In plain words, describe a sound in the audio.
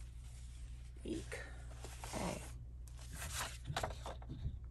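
Papers rustle and shuffle as hands sort through them.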